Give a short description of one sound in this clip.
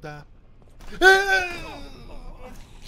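A young man screams in fright close to a microphone.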